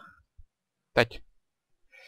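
A sword strikes a creature with a quick thud.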